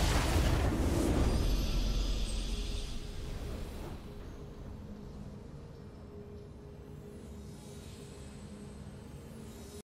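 A triumphant victory fanfare plays and fades.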